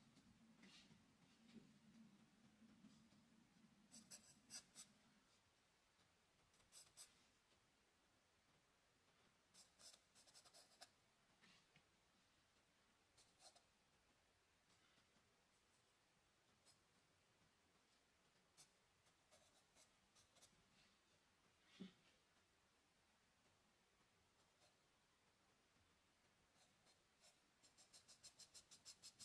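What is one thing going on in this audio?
A pencil scratches and taps softly on paper.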